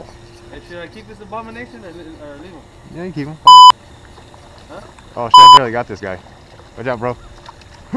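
A fishing reel clicks as its line is wound in.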